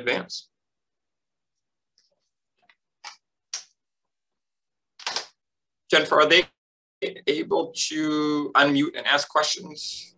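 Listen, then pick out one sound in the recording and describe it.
A man speaks calmly, heard through an online call, with pauses.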